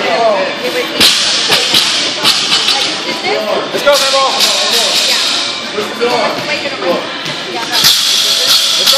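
Barbells clang and thud as they are dropped on the floor.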